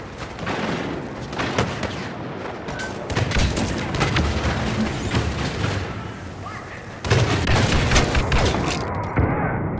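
Blaster shots crack in rapid bursts.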